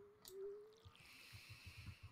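Water splashes from a watering can.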